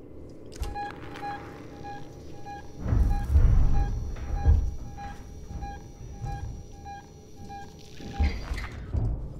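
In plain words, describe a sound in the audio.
A motion tracker beeps in quick, even pulses.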